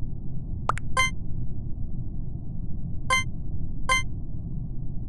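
Short electronic chimes sound as votes are cast in a game.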